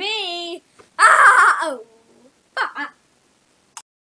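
A boy shouts and laughs excitedly close by.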